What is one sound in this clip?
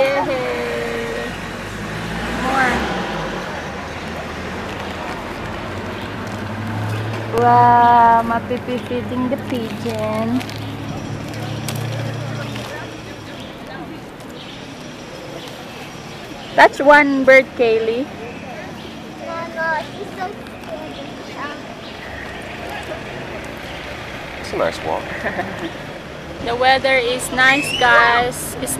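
A young girl talks and squeals in a high voice nearby.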